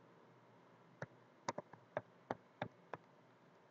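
Keys clack on a keyboard in quick, uneven taps.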